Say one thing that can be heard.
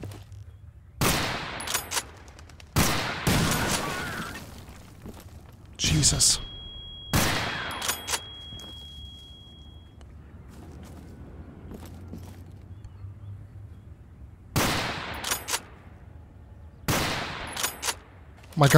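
A rifle fires loud single shots that echo outdoors.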